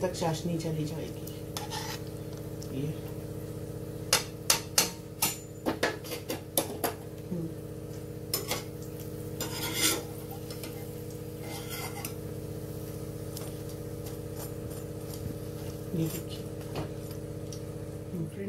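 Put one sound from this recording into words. A metal utensil scrapes and taps against a pan.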